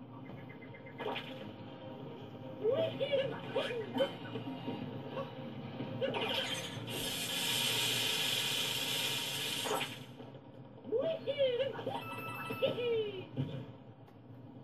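Cartoonish game sound effects chirp and whoosh from a television speaker.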